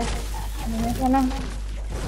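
A pickaxe strikes a tree with sharp knocks.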